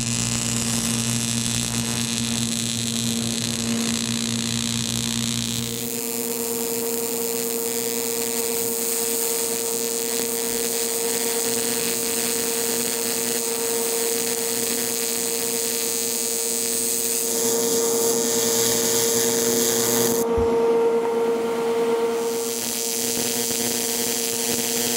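An electric welding arc hisses and buzzes steadily.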